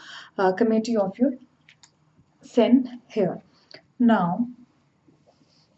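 A young woman speaks calmly and clearly close by.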